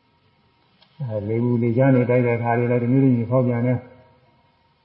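An elderly man chants in a low, steady voice.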